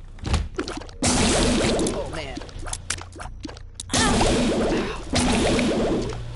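Laser beams blast loudly in roaring bursts.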